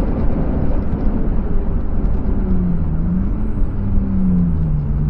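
Wind and road noise rush steadily past the car.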